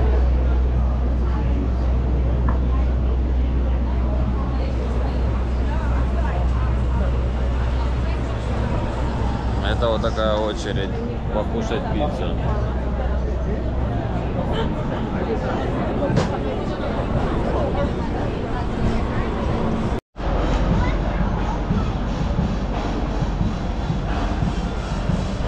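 A crowd murmurs and chatters on a busy street outdoors.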